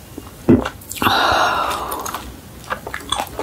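A young woman lets out a loud, satisfied sigh.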